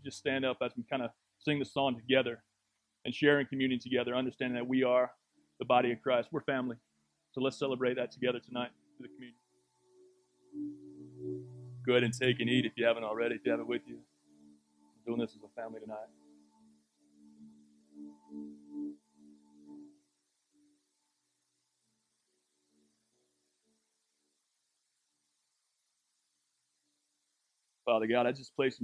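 A man speaks calmly and with feeling into a microphone.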